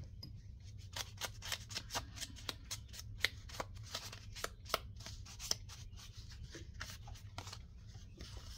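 A sponge dabs rapidly on paper.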